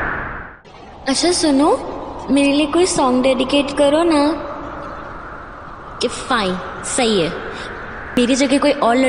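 A young woman sings close by.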